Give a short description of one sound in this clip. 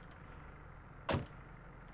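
A vehicle door shuts with a thud.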